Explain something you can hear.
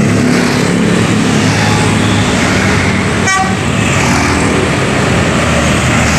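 A large bus engine roars as the bus drives past close by.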